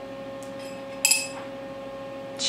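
A metal part clinks as it is set down on a steel surface.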